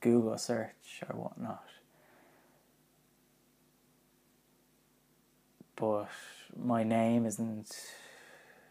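A young man speaks calmly into a close microphone, pausing between phrases.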